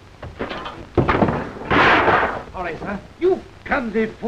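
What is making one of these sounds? Men scuffle and grunt.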